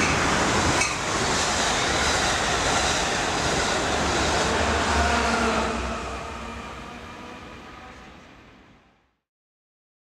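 A train rushes past close by with a loud roar, then fades away.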